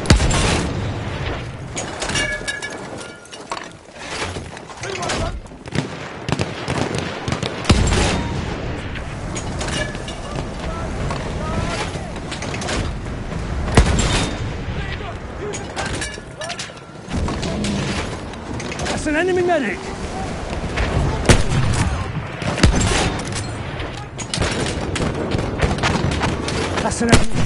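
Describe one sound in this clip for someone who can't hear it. Gunfire crackles and pops constantly nearby and far off.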